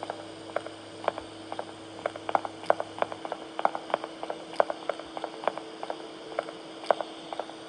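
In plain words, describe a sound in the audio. Fingertips tap on a touchscreen.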